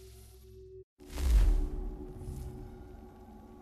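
Glass shatters with a loud, booming crash.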